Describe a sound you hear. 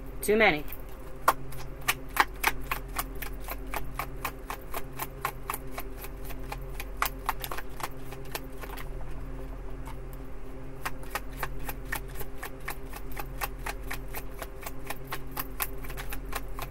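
Cards riffle and flick quickly as a deck is shuffled.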